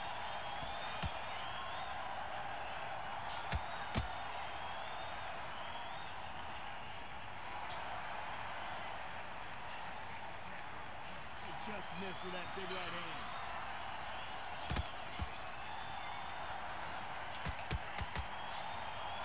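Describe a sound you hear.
Gloved punches land with dull thuds.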